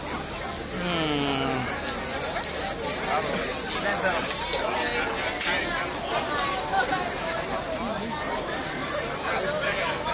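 A crowd of adults chatters all around outdoors.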